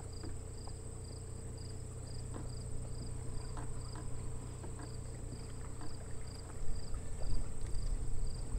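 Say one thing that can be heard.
Wind rumbles steadily outdoors over open water, gusting harder near the end.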